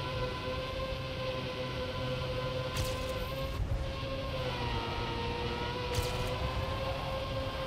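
A racing car engine hums steadily at high speed.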